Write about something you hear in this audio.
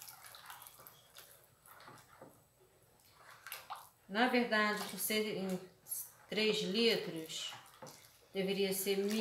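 A spoon stirs and scrapes in a bowl of liquid.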